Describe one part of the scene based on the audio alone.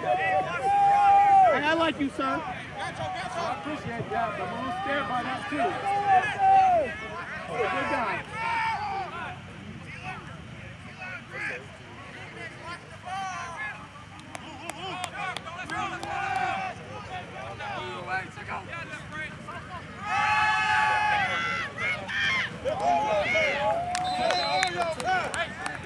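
A crowd of men and women shouts and cheers outdoors.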